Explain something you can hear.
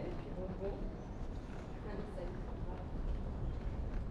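An escalator runs with a low hum in a large echoing hall.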